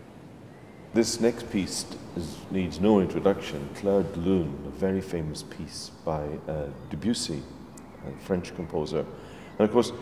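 An elderly man speaks calmly and close by, in a large echoing hall.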